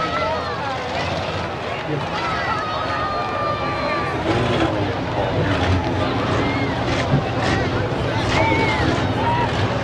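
A crowd of people chatters and calls out nearby.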